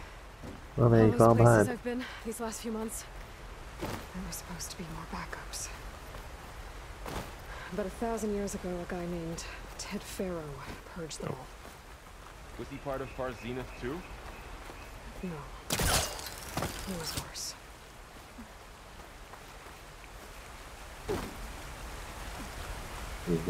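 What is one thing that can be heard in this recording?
Footsteps patter on rock and grass.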